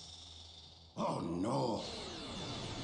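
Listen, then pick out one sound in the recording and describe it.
A man cries out in alarm in a strained, raspy voice.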